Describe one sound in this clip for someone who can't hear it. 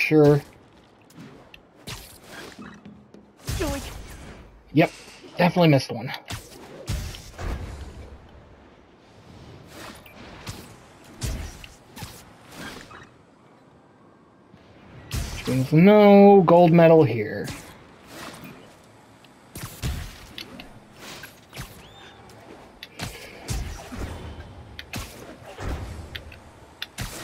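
Web lines thwip and air whooshes past as a figure swings between buildings.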